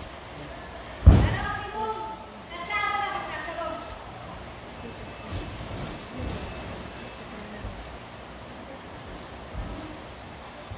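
A person thumps down on a gym mat in an echoing hall.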